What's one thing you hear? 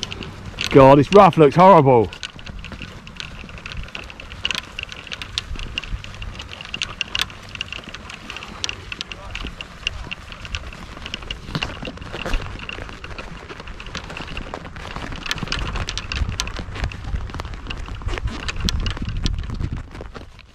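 Trolley wheels rumble over grass.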